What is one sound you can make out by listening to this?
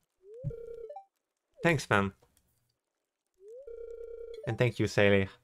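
A short electronic chime plays.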